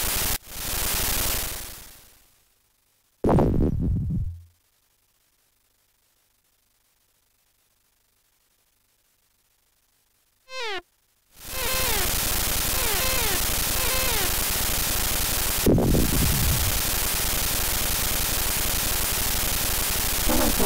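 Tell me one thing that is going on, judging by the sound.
Harsh electronic hiss from a video game comes in loud bursts.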